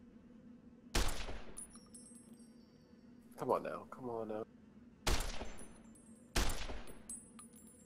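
A rifle fires loud, sharp shots that ring out.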